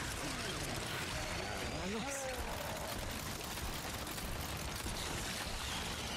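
A creature growls and shrieks in a video game.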